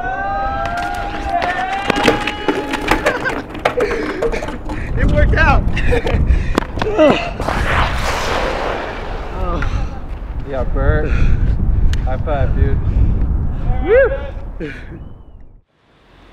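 A young man shouts and laughs with excitement close by.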